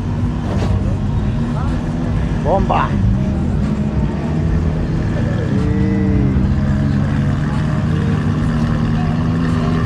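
A sports car engine rumbles deeply as the car rolls slowly past.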